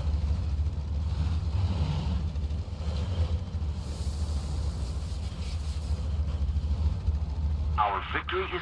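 A propeller engine idles with a steady low rumble.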